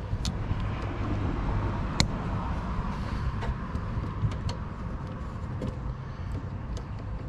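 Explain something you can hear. Plastic wire connectors click and rattle as hands twist wires together.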